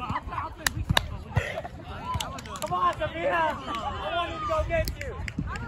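Young men and women call out to each other outdoors during a volleyball game.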